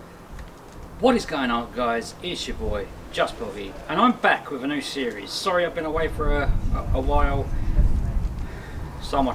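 A man talks calmly and with animation nearby, outdoors.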